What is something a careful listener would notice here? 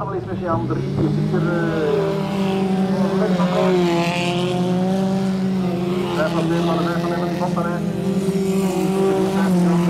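Race car engines roar and rev loudly nearby.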